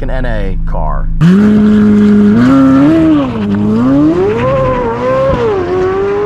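A sports car engine roars loudly as it accelerates away, its pitch rising and falling through the gears.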